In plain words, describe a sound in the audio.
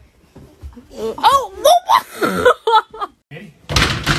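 A woman laughs loudly and shrieks close by.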